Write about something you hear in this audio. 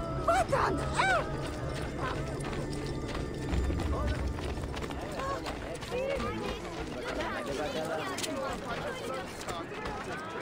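Footsteps run quickly over stone paving.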